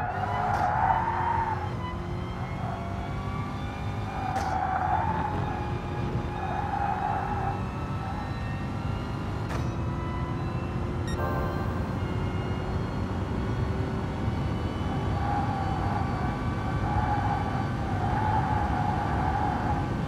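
A racing car engine roars loudly, rising in pitch and dropping with each gear change.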